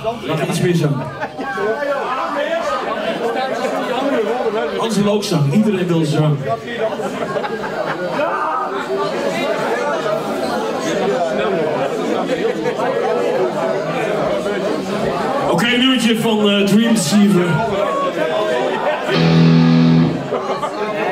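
A metal band plays loud distorted guitars in a large echoing hall.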